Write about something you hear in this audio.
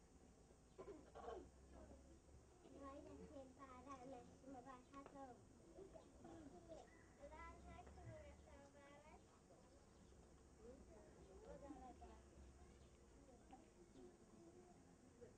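Young children talk and call out close by, outdoors.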